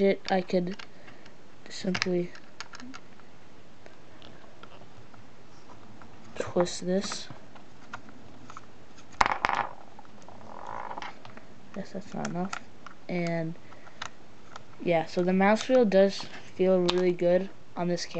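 Plastic parts click and rattle as hands handle a small toy.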